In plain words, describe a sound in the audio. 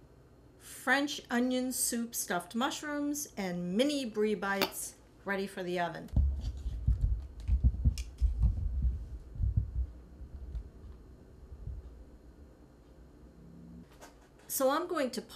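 An older woman talks calmly and warmly, close to the microphone.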